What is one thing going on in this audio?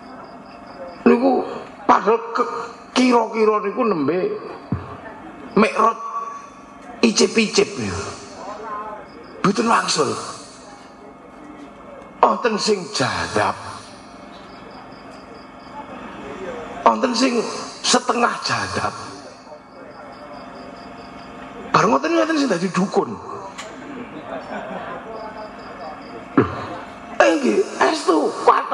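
A middle-aged man speaks with animation into a microphone, in bursts with pauses.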